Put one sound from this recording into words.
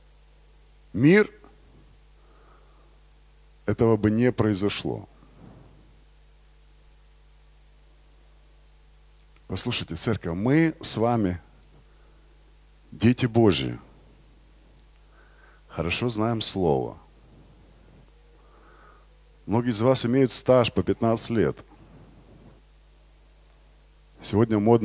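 A man speaks with animation through a microphone in short bursts with pauses, heard over loudspeakers in a large hall.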